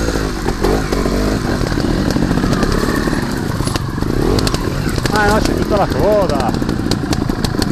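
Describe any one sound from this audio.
Other motorcycle engines idle and rev nearby.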